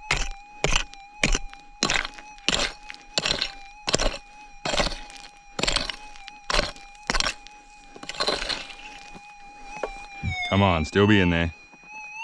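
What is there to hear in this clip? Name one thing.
A metal detector hums with a steady, wavering tone.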